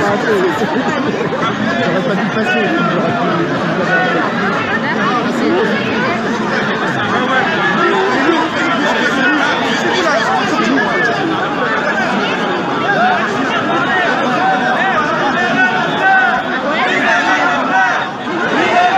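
A large crowd of men and women shouts and chatters loudly outdoors, close by.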